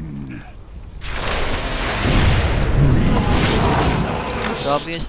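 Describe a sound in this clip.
Magic blasts and crackling spell effects roar loudly.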